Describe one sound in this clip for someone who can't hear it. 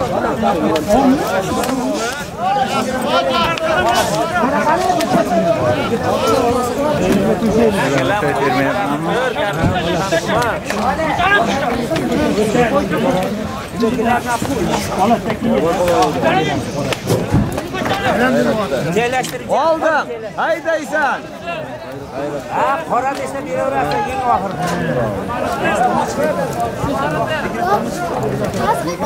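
A crowd of men shouts and calls out loudly outdoors.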